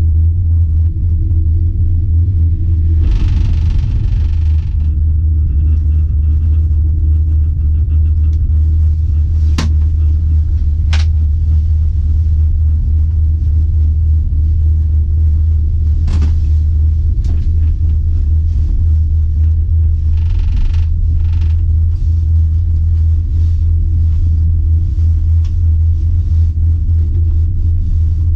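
A cable car cabin hums and rumbles steadily as it glides along.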